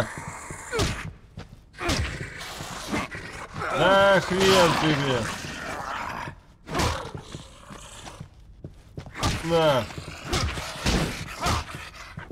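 Heavy blows thud and smack.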